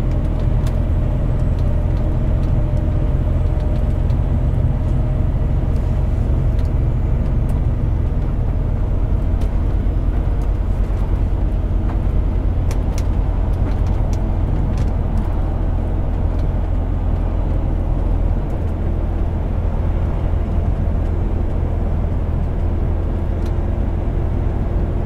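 A truck engine drones low and steady from inside the cab.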